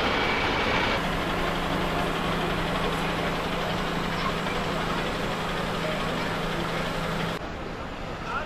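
A heavy truck engine hums steadily as a lorry rolls slowly past.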